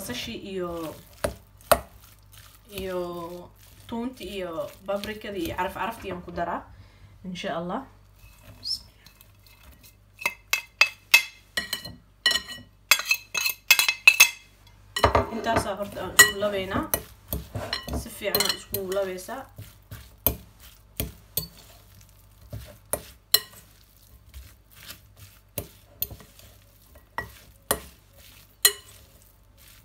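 A fork clinks against a glass bowl.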